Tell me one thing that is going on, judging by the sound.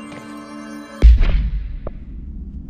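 A soft whoosh sounds as a game menu opens.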